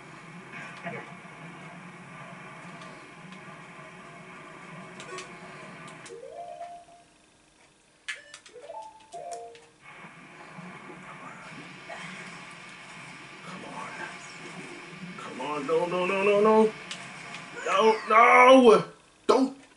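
Video game music plays from a television speaker.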